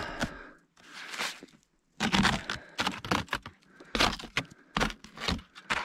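A hand brushes and scrapes snow off a car in quick swipes.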